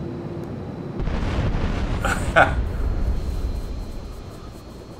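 A plane explodes with a deep rumbling roar.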